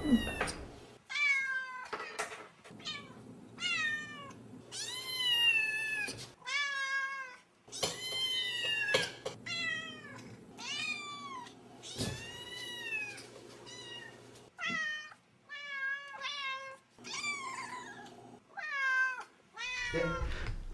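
Cats meow loudly and repeatedly close by.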